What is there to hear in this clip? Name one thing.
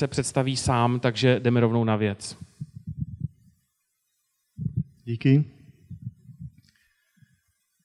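A young man speaks with animation into a microphone.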